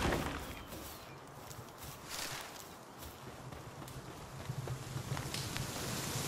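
Footsteps patter across grass.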